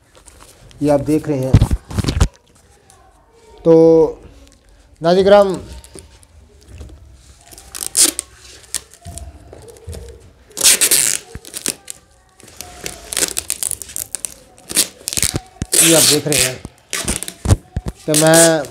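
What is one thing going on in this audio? Paper and card rustle as a parcel is handled.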